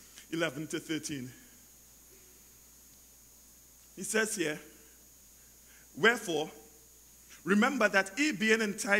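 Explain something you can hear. A man preaches into a microphone in bursts, with long pauses between.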